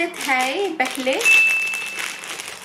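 Plastic wrapping crinkles in a person's hands.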